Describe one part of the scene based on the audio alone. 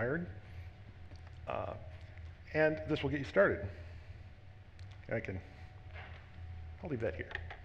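A man speaks in short phrases through a microphone in a large hall.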